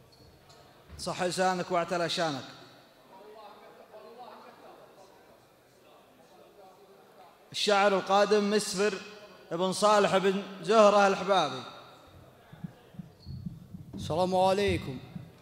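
A young man recites loudly into a microphone over loudspeakers.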